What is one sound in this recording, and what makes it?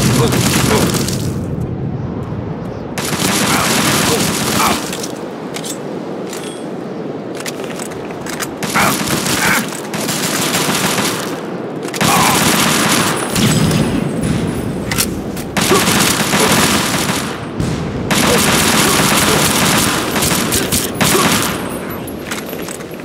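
Guns fire in loud rapid bursts.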